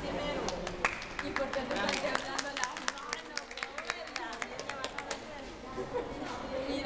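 Several people clap their hands in applause.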